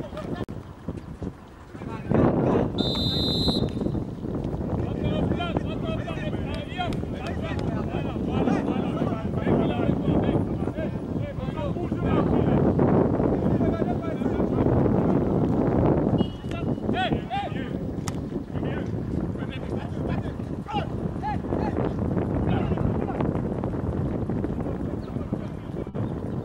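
A small crowd of spectators chatters and calls out outdoors.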